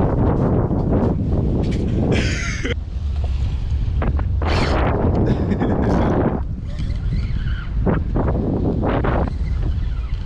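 Waves slosh against a boat's hull.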